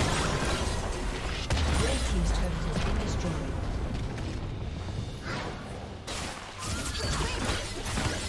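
Game spells and blows crackle and clash in a busy fight.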